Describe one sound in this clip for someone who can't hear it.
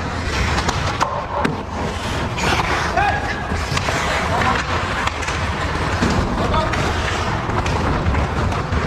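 Ice hockey skates scrape and carve on ice in a large echoing arena.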